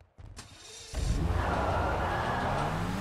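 A car engine revs up loudly.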